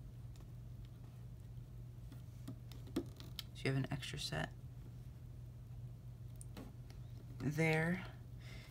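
Small rubber bands snap and click softly as they are hooked.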